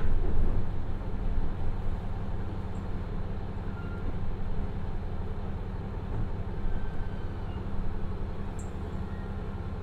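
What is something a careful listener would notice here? Train wheels roll and clack on the rails, slowing down.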